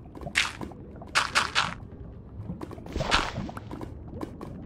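Gravel crunches as a block is dug out.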